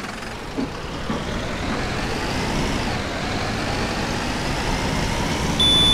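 A diesel city bus engine revs up as the bus pulls away.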